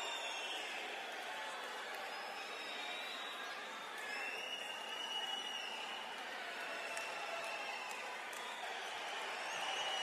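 A large stadium crowd sings and chants loudly together.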